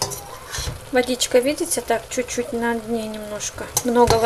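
A metal spoon scrapes and stirs inside a pot.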